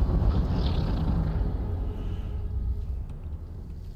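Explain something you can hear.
Tall grass rustles as someone pushes through it.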